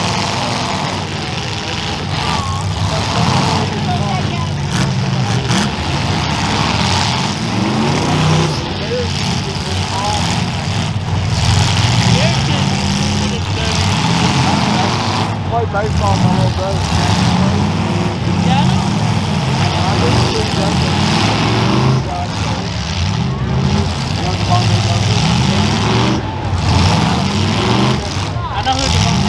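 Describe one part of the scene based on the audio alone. Car engines rev and roar loudly.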